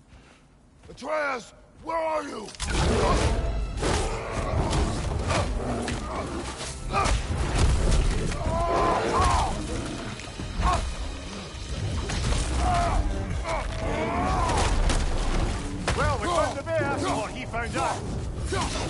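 A man speaks gruffly in a deep voice.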